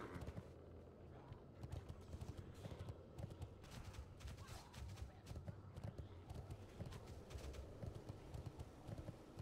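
Hooves patter quickly on the ground.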